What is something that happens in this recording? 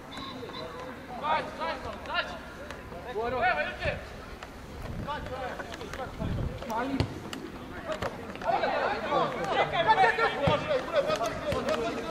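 Young men call out to each other across an open field.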